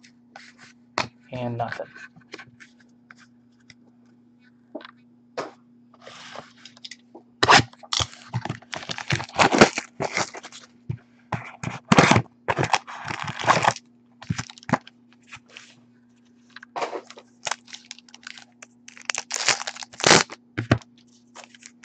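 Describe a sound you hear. Cardboard boxes and cards tap and rustle as hands handle them on a table.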